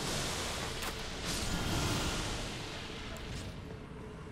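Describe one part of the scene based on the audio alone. A magic blast crackles and bursts with a loud whoosh.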